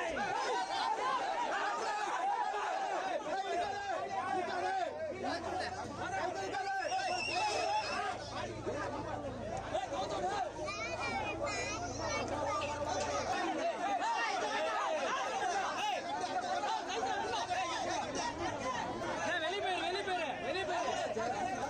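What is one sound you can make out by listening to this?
A crowd of men shouts and cheers loudly close by.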